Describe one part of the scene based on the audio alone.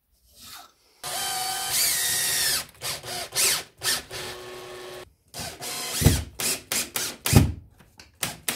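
A cordless drill whirs in short bursts.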